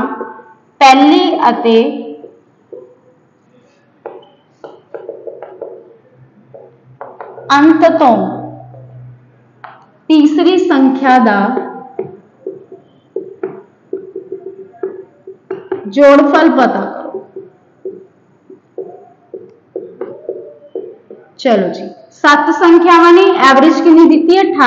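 A young woman speaks calmly and clearly, close by, as if teaching.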